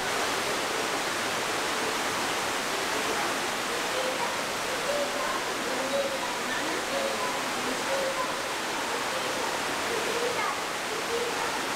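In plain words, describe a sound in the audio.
Water splashes steadily down a small waterfall, echoing in a cave.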